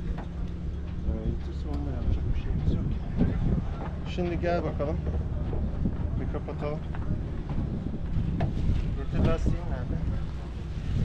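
A man talks nearby, calmly.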